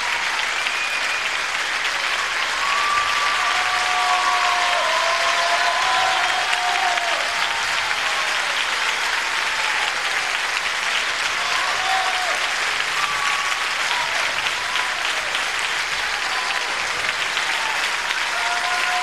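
A man speaks on stage in a large hall.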